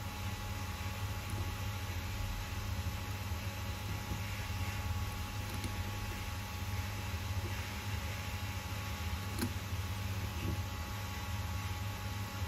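Small metal parts click together as a carburetor is handled.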